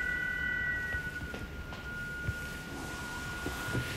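A fabric pillow rustles as it is pulled from a shelf.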